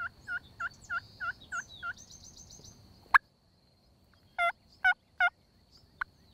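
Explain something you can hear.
A wild turkey yelps in a series of short calls.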